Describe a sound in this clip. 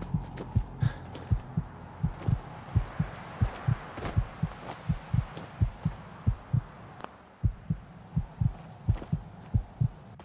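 Heavy footsteps thud steadily on rocky ground.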